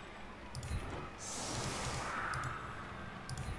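A magical shimmering whoosh sounds.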